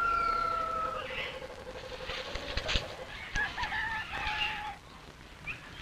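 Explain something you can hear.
Leaves rustle as a person pushes through dense foliage.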